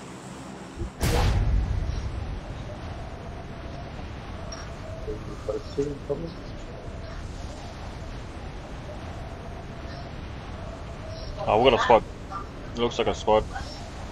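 Wind rushes loudly during a freefall, then eases.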